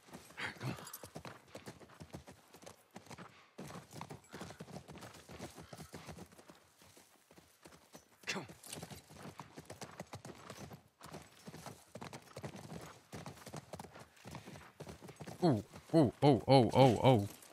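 A horse's hooves clop steadily on grass and pavement.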